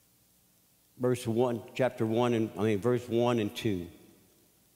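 An older man speaks slowly and emotionally into a microphone.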